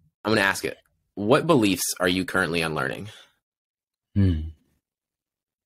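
A young man speaks calmly and close into a microphone over an online call.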